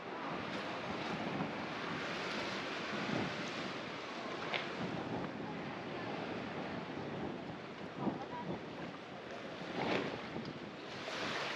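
Small waves lap gently against a sandy shore.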